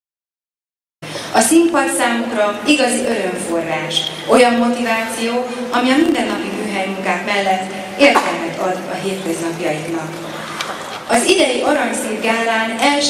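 A group of men and women sing together.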